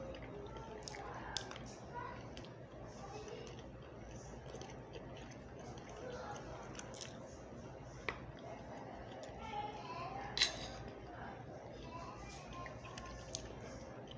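A woman chews and smacks her lips while eating.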